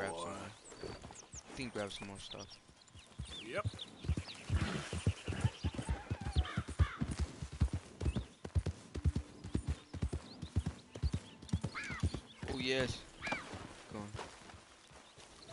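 A horse's hooves thud as it gallops over grass.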